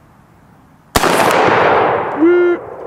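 A single gunshot cracks loudly and echoes away.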